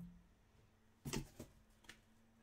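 A cardboard box is set down with a dull thud.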